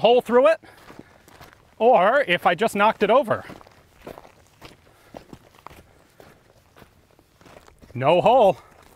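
Footsteps crunch on stony ground.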